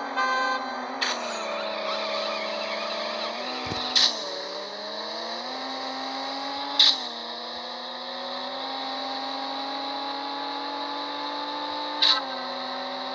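A car engine roars as it accelerates, dropping in pitch with each gear shift.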